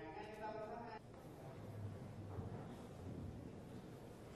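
A man speaks calmly and formally into a microphone.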